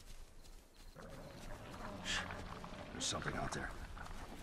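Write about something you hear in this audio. Footsteps rustle through long grass.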